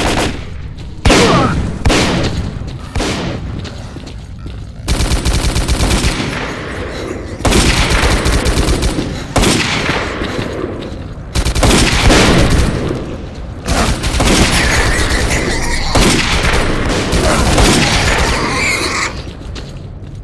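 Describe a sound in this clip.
Gunshots fire rapidly and echo loudly.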